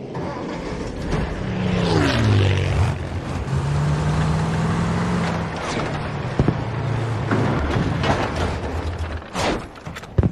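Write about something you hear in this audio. A vehicle engine rumbles and drones as it drives.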